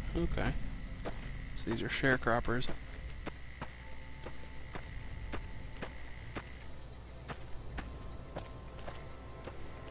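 Footsteps crunch steadily over dry, gravelly ground.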